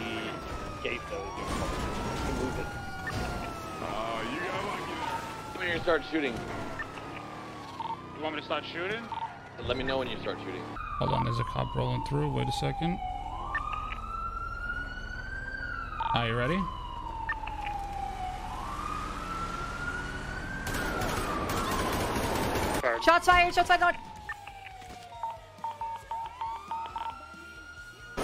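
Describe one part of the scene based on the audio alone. A siren wails up and down.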